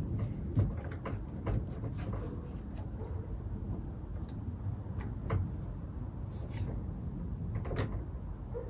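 Small metal parts click and tap close by.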